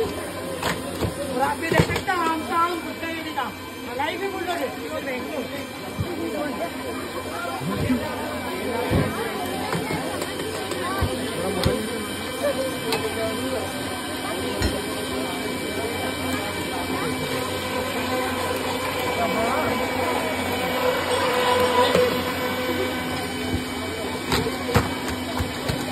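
A machete chops into green coconuts.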